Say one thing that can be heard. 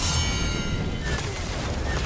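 A fiery explosion bursts with a loud roar.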